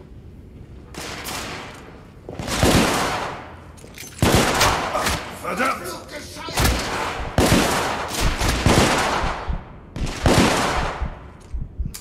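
Gunshots ring out rapidly, one after another, with echo.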